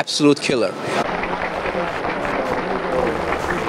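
A large crowd applauds and cheers outdoors.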